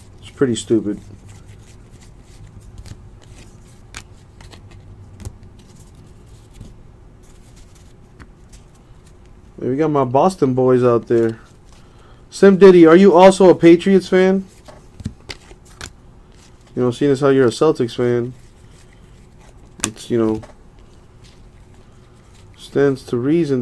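Cards rustle and flick as they are sorted by hand.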